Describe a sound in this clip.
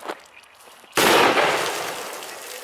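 A loud blast booms nearby and slowly fades.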